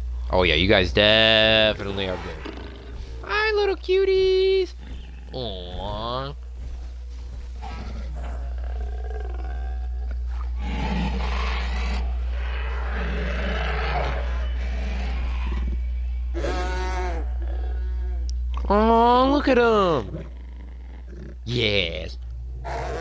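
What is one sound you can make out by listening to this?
A large creature bellows and grunts in loud, rising calls.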